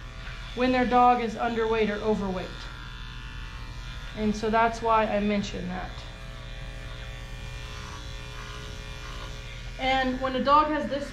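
Electric clippers hum steadily.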